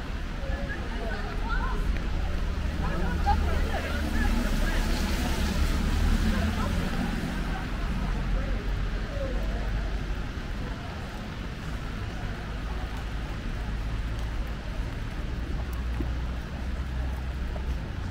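Traffic rumbles along a wet street.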